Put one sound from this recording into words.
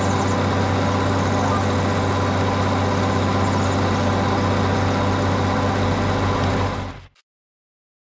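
A combine harvester engine rumbles steadily, then cuts off.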